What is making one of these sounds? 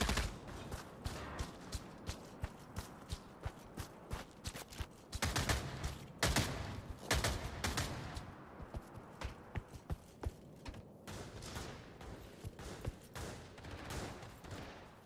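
Footsteps crunch steadily over snow and gravel, then tap on a hard floor.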